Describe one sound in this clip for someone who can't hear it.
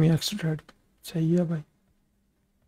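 A young man talks loudly and with animation into a close microphone.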